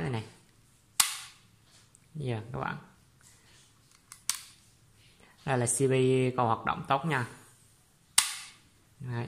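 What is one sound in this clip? A circuit breaker switch snaps with a sharp click.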